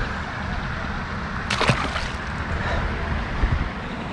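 A fish splashes as it drops into the water.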